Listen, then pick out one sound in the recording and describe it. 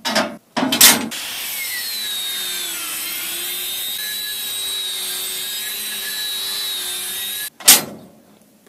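An angle grinder whines loudly as it grinds steel.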